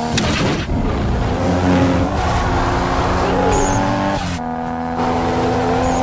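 Car engines roar and rev loudly.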